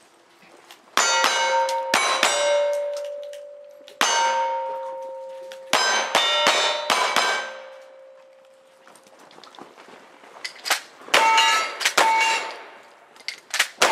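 Gunshots crack sharply outdoors in quick bursts.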